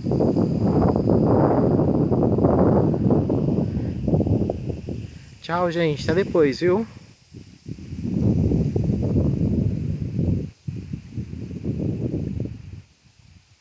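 Wind gusts rumble across the microphone outdoors.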